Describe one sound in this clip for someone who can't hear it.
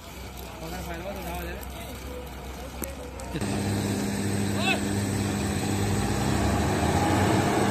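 A combine harvester engine rumbles steadily nearby.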